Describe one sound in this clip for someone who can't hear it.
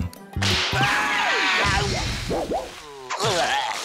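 A cartoon character yells loudly while flying through the air.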